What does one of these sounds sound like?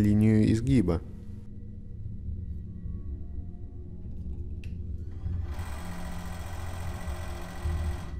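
A hydraulic press hums steadily as it closes.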